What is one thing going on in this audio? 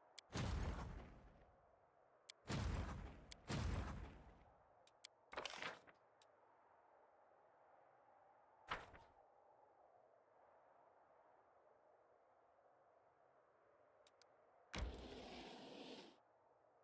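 Short game menu sounds whoosh and click as windows open and close.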